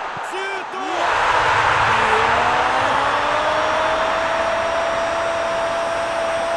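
A stadium crowd erupts in a loud cheer.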